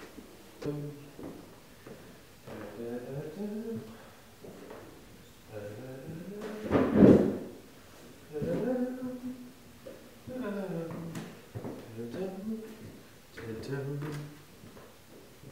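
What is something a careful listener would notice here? A man talks.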